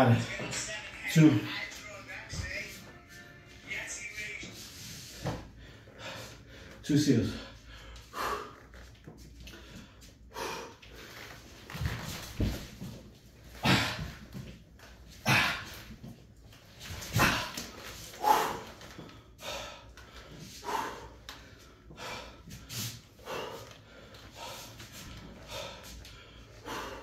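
A man breathes heavily with effort.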